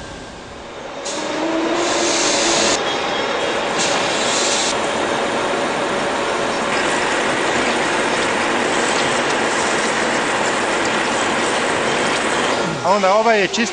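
A lathe whirs loudly.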